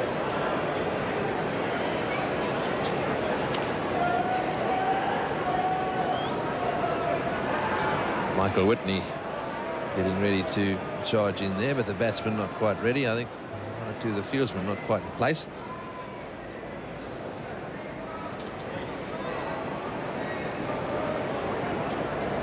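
A crowd murmurs steadily across a large open ground.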